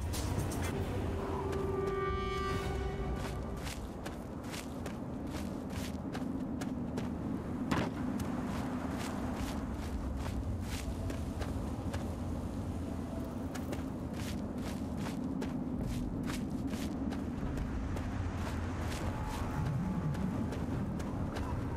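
Footsteps crunch on dry, dusty ground.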